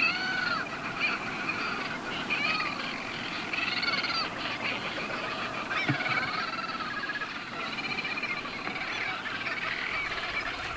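Seal pups cry with high, wavering wails.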